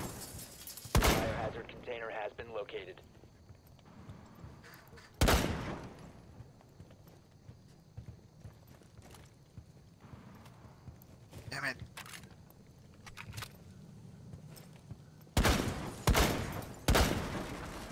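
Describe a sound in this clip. A rifle fires single shots in a video game.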